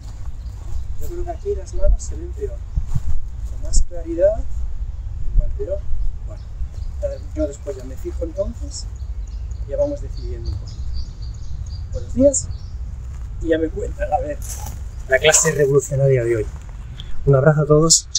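A man speaks calmly and clearly to a nearby listener, outdoors.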